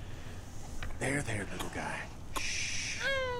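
A young girl speaks softly and soothingly.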